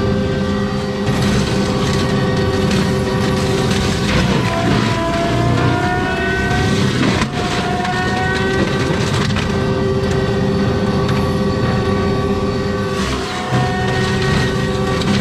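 Wood chips and debris clatter against the machine.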